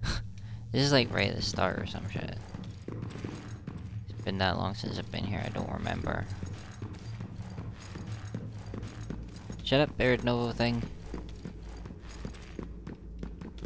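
Footsteps clatter on a hard metal floor.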